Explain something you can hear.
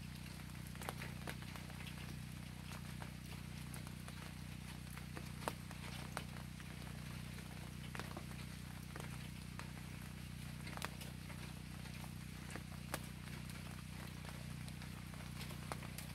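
Wind rustles through tall grass and leaves.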